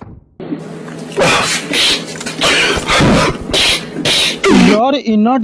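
A man shouts loudly with exaggerated emotion.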